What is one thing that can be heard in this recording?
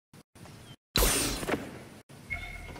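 A magical whoosh sounds as a game character transforms.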